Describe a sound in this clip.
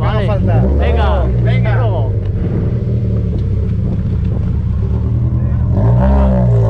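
A rally car engine revs up and down in short bursts.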